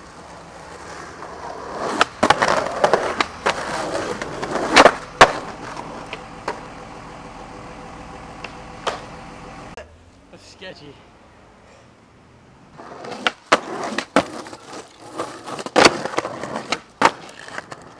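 Skateboard wheels roll and rumble on pavement.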